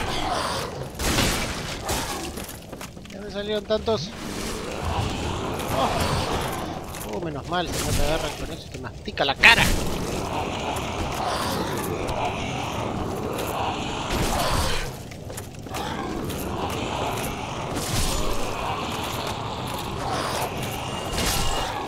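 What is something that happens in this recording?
Sword blows strike creatures with sharp thuds.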